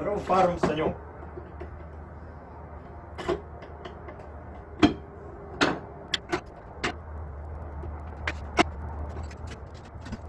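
Metal containers clink and knock as they are handled.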